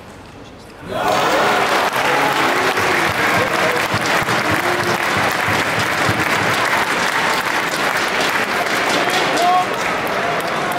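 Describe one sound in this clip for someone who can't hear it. A crowd in a large hall cheers and applauds loudly.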